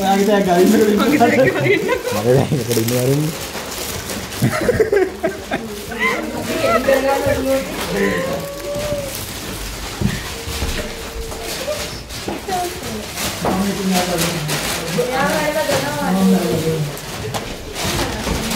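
Young women talk nearby.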